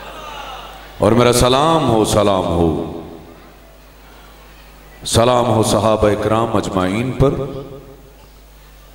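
A man sings slowly into a microphone, heard loud through a loudspeaker.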